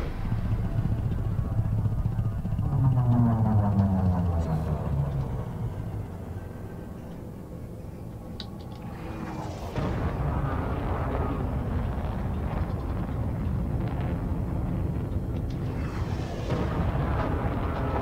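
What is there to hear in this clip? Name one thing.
A spacecraft engine hums with a low, steady rumble.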